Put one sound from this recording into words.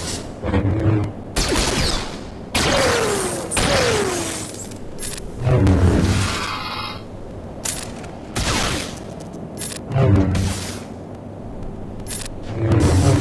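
Blasters fire in rapid bursts.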